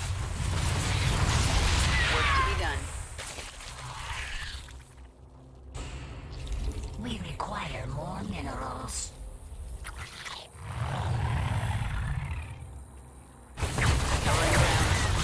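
Creatures screech and weapons fire in a game battle.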